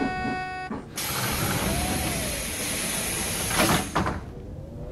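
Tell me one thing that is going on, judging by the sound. Bus doors hiss with a burst of air as they open and close.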